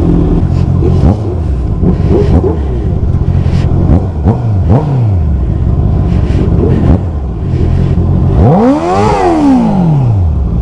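A motorcycle engine revs up and down as it rides off.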